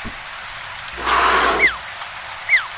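An animal snarls in a scuffle.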